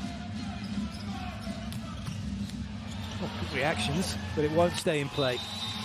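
A volleyball is struck hard.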